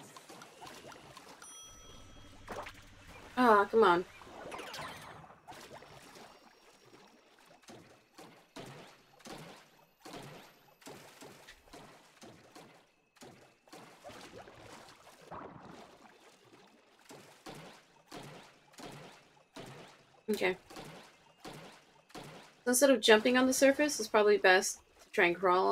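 Game sound effects chime and swish.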